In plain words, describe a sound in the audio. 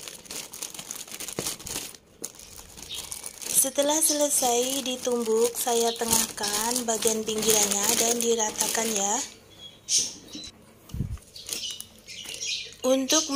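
A plastic bag rustles and crinkles as hands handle it.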